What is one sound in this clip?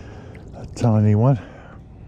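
A small fish splashes at the water's surface.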